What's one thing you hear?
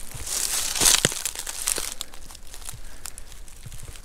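A squirrel rustles through dry leaves.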